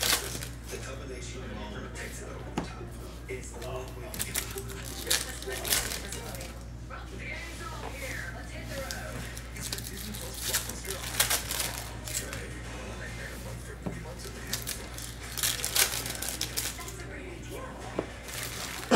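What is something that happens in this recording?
Cards shuffle and flick against one another.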